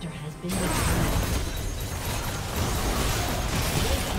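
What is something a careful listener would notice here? A structure collapses with a heavy crash in a video game.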